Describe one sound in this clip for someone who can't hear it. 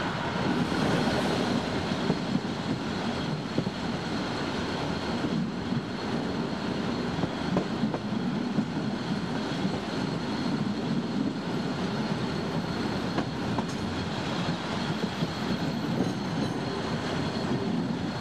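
Train wheels clatter over rail joints and points.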